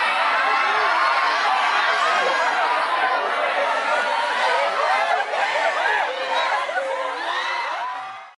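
A large crowd screams and cheers excitedly in a big echoing hall.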